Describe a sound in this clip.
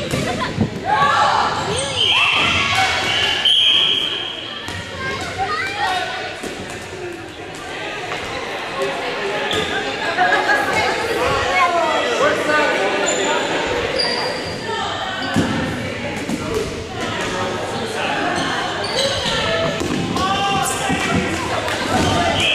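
A crowd of young people shouts and chatters in a large echoing gym.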